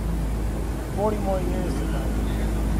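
A man talks briefly nearby.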